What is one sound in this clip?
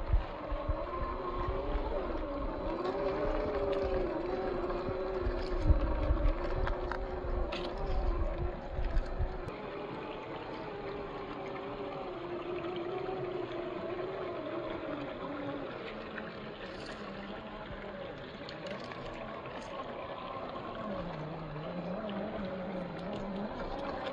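A small electric motor whines, its pitch rising and falling.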